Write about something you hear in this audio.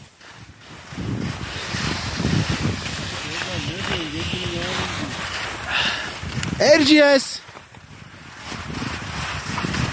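Skis scrape and hiss over crusty snow.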